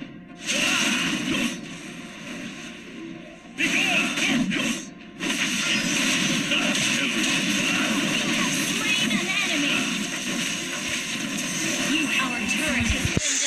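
Swords clash and magic blasts whoosh in a fast fight.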